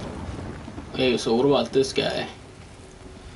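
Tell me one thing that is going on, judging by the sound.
A young man speaks briefly into a nearby microphone.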